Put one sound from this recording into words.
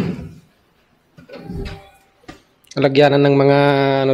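A wooden drawer slides and bumps.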